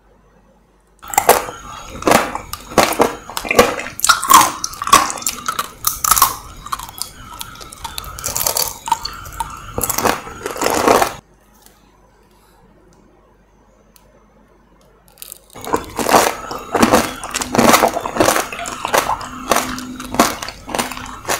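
A woman chews juicy fruit wetly, very close to a microphone.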